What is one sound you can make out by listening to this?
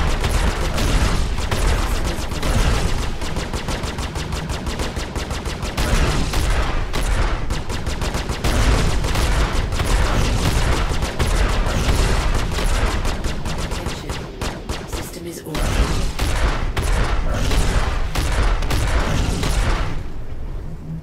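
A spacecraft engine roars steadily.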